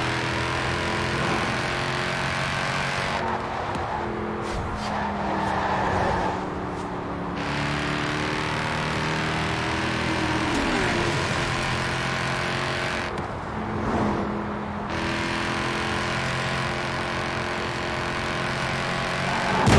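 A sports car engine roars steadily at high speed, with gear shifts.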